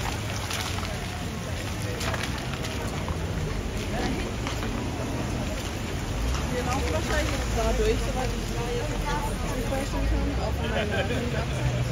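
A car engine rumbles as a car drives slowly past.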